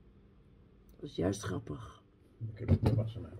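A woman laughs softly close by.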